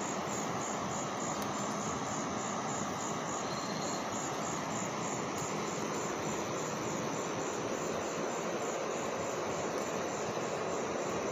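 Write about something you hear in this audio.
A swollen river rushes by with a steady roar.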